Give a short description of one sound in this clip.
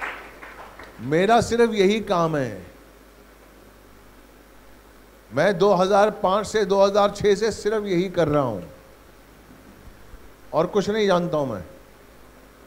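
An elderly man speaks with animation through a microphone and loudspeaker.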